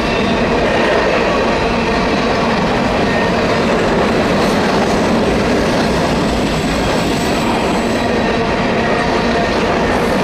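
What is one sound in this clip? Freight cars rumble and clatter steadily along the rails close by.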